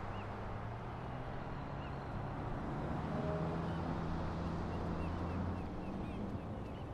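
A bus drives by close.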